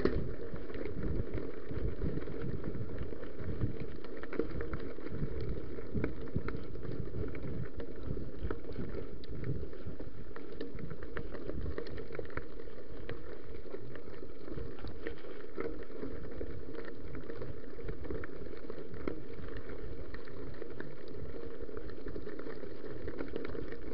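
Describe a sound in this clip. A bicycle frame rattles and clicks over bumps.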